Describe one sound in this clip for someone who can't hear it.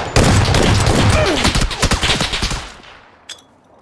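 Gunshots fire rapidly and loudly.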